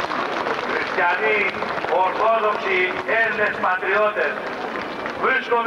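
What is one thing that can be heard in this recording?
A man speaks with animation into a microphone over loudspeakers.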